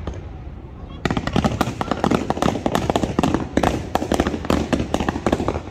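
Fireworks crackle and pop in rapid bursts.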